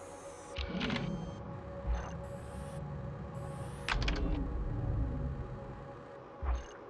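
A menu whooshes as the view zooms in.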